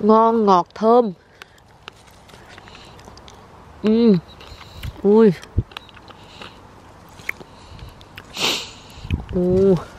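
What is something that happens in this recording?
Leaves rustle as a hand picks berries.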